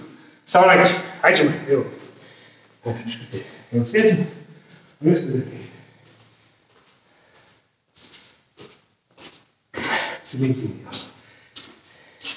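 A middle-aged man speaks calmly and close by in an echoing room.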